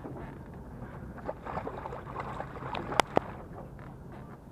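A fish splashes at the water's surface beside a boat.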